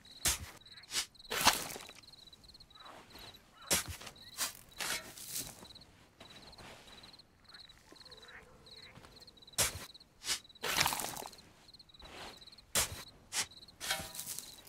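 A shovel strikes and scrapes into loose dirt, again and again.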